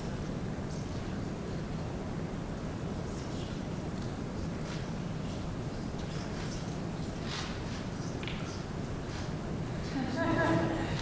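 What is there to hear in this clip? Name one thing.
A crowd applauds in a large room.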